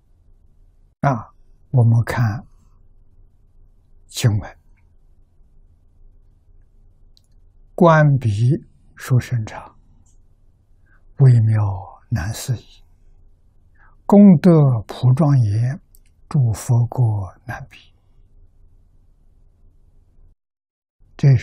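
An elderly man speaks slowly and calmly, close to a microphone, with pauses between phrases.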